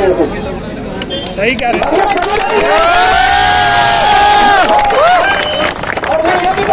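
A crowd of young men claps along.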